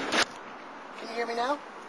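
A young man talks into a phone.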